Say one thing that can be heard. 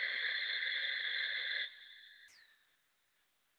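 A man breathes forcefully through his nose.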